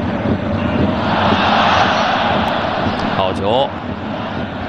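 A stadium crowd swells into a loud cheer.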